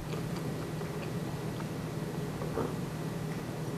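A man sips a drink close by.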